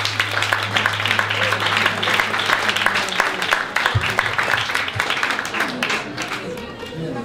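An audience applauds and cheers loudly.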